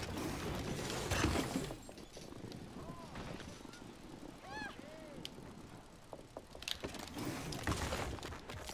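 A rider crashes and thuds to the ground with the bicycle clattering.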